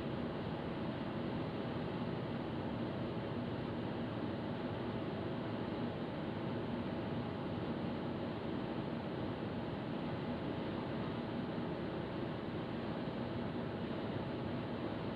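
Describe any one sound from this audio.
A car's engine hums steadily from inside.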